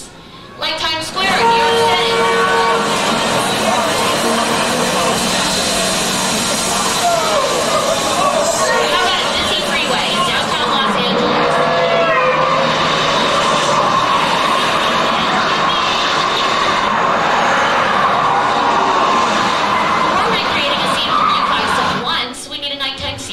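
Several women sing together through loudspeakers in a large hall.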